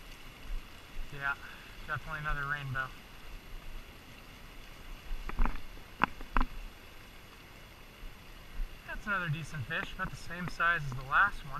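River water ripples and laps gently.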